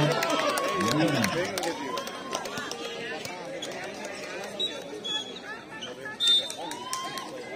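A crowd of young men chatters and shouts outdoors.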